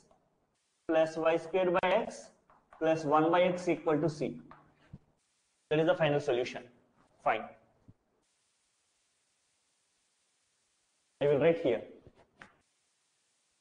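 A man explains calmly, close by, in short bursts with pauses.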